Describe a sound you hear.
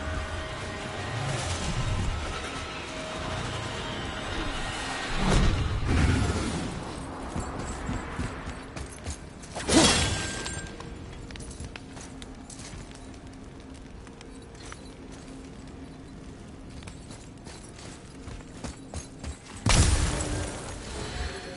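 Heavy footsteps fall on stone.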